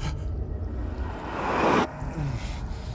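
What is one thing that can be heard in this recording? A rushing whoosh swells and stops abruptly.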